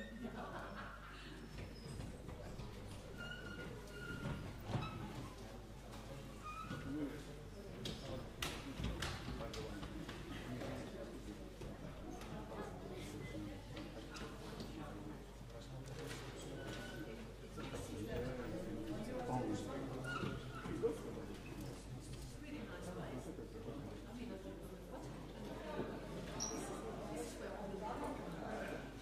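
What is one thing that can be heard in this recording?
An audience murmurs and chatters quietly in a large echoing hall.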